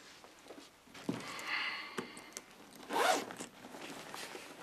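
A man unfastens the clasp of a leather bag.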